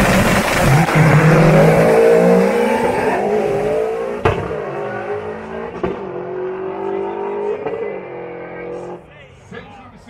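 Race cars accelerate away down the track, their engines fading.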